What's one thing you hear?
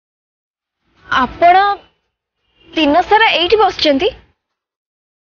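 A young woman speaks with agitation close by.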